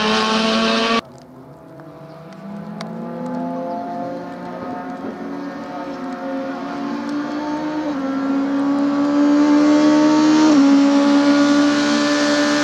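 A rally car engine approaches from a distance, growing steadily louder.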